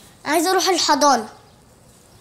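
A young girl speaks in a high, soft voice.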